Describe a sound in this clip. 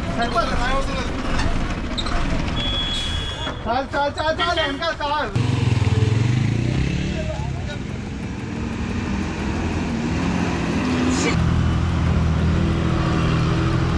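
A bus engine rumbles and strains.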